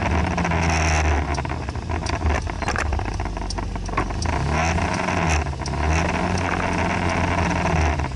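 A car engine idles close by.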